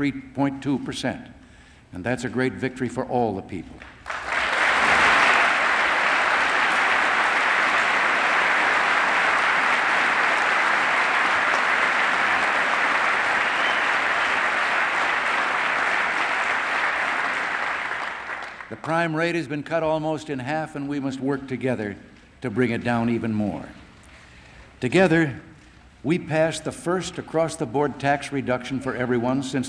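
An elderly man speaks steadily into a microphone in a large echoing hall.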